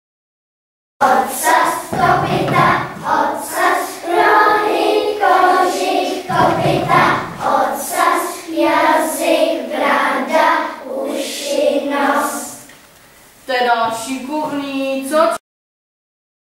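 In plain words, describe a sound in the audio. A group of young children sing together.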